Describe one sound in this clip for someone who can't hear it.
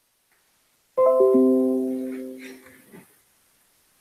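A computer notification chime rings once and fades.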